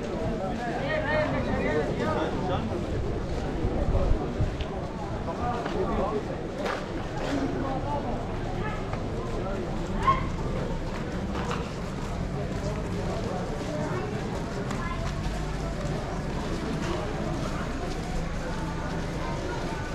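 Footsteps shuffle on a paved street.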